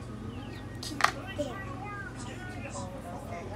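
Plastic toys clatter on a table.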